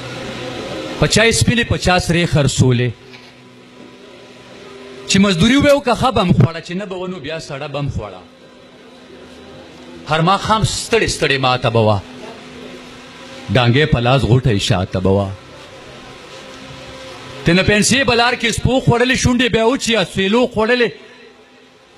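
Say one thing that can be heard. A man speaks forcefully into a microphone over a loudspeaker in short bursts, with pauses between.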